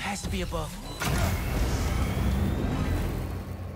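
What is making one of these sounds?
A burst of fire roars with a loud whoosh.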